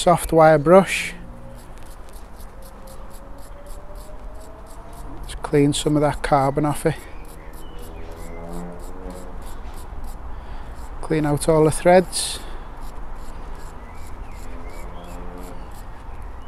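A wire brush scrapes rapidly against metal.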